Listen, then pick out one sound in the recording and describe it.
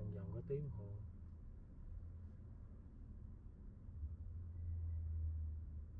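A car engine idles with a low, steady hum.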